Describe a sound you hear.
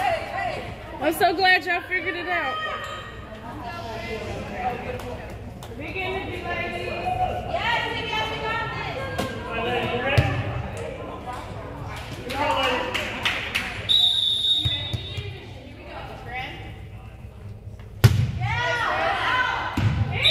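Young women shout and cheer close by in a large echoing gym.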